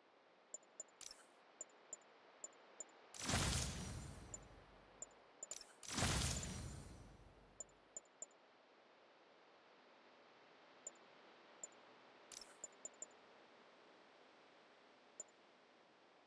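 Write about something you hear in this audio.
Soft electronic menu ticks click repeatedly.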